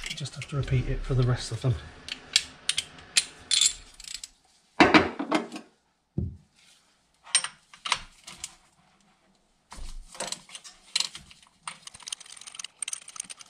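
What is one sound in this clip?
Metal tools clink and scrape against engine parts.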